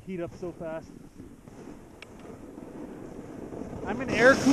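A snowboard scrapes and hisses over snow, growing louder.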